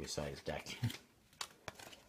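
Playing cards drop and slap onto a pile.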